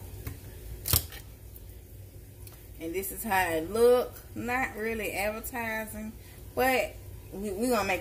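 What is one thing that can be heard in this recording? A can opener clicks and grinds on a tin can.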